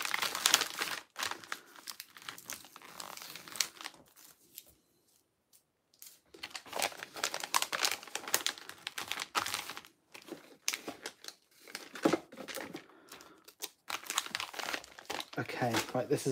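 A padded paper envelope rustles as it is handled.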